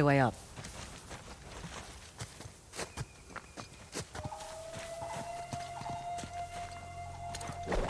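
Footsteps crunch through grass and on stone steps.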